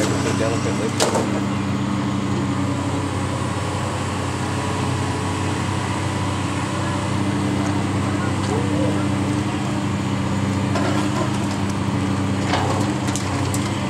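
Brick and debris crack and clatter as a demolition claw bites into a wall.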